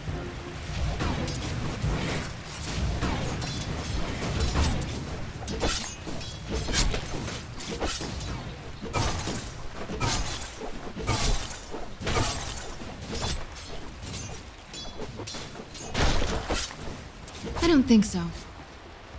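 Game characters' weapons clash repeatedly.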